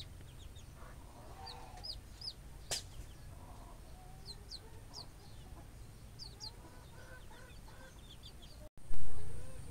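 Ducklings peep shrilly and often, close by.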